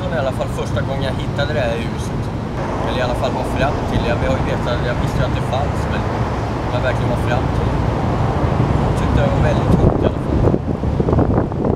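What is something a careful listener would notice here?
A young man speaks calmly, close by, outdoors.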